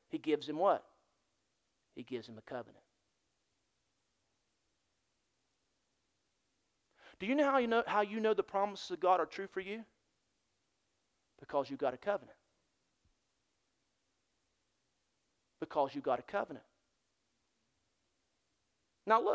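A middle-aged man speaks with animation through a microphone in a large room, with pauses between phrases.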